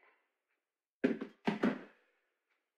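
A glass bottle is set down on a counter with a knock.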